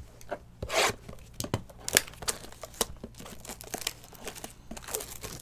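Fingers tap and scrape on a cardboard box.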